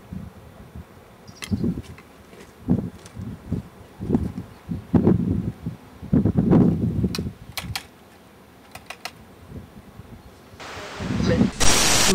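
Wind gusts outdoors, buffeting the microphone.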